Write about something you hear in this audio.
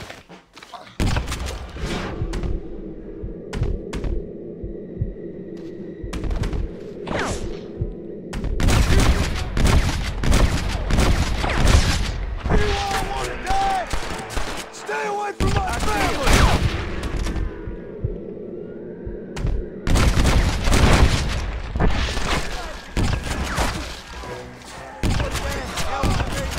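Rifle shots crack repeatedly nearby.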